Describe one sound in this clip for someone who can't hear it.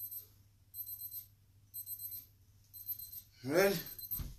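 A phone beeps several times in quick succession.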